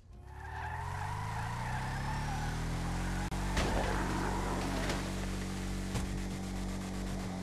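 A truck engine revs as the truck drives off.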